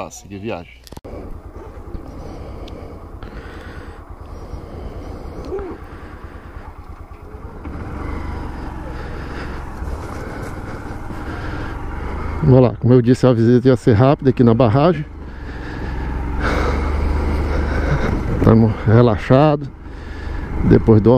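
A motorcycle engine idles and then runs as the bike rides off.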